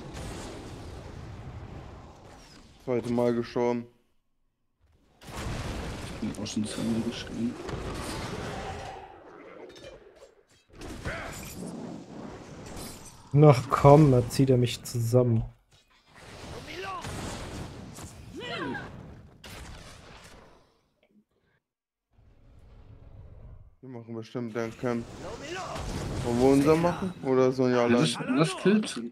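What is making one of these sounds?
Magic blasts and weapon hits crackle and thump in a game battle.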